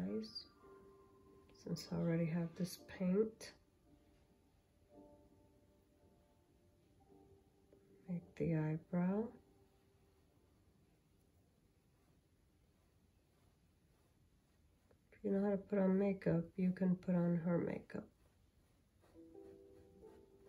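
A paintbrush strokes softly across canvas.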